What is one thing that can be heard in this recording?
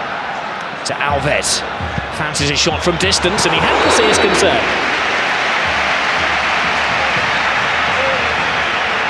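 A large crowd roars and cheers in a big open stadium, swelling louder.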